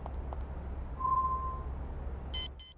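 A short electronic tone sounds.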